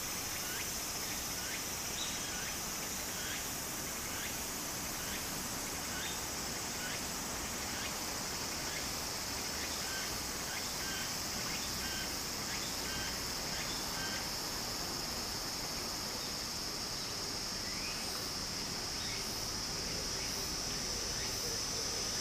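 Shallow water trickles steadily over stones and dirt.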